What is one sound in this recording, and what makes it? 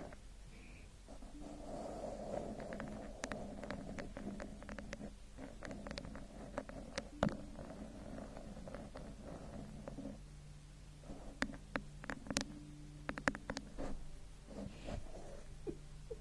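Long fingernails tap and scratch on a microphone cover.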